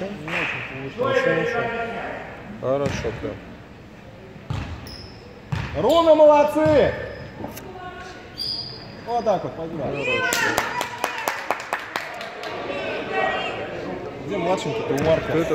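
Young players and spectators shout and call out in a large echoing hall.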